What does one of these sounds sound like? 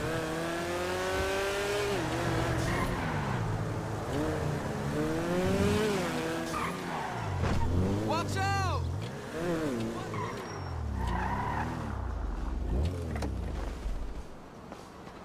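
A supercar engine revs hard through gear changes.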